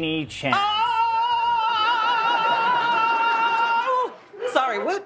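A woman sings a long wavering note.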